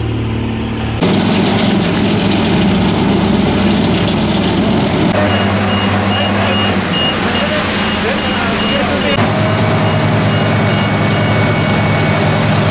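A paving machine's engine roars loudly nearby.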